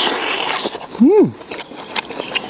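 A man makes a short rising and falling hum of pleasure close by.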